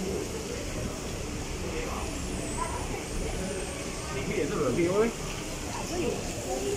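Men and women chatter nearby in a busy crowd.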